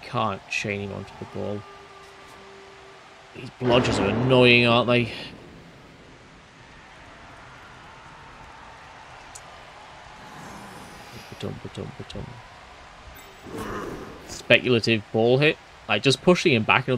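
A man talks with animation, close to a headset microphone.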